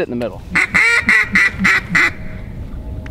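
Geese honk loudly several times close by.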